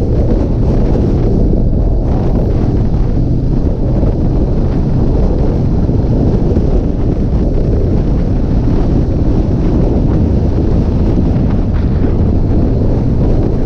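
A motorcycle engine idles close by with a deep, steady rumble.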